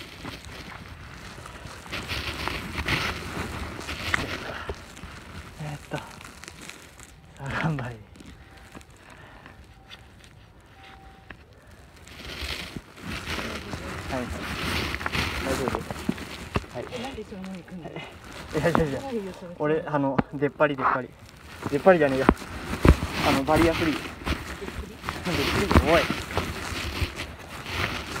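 Hiking boots crunch on dry leaves and dirt.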